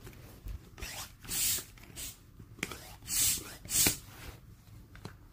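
A bicycle floor pump hisses in bursts of air as it is pumped by hand.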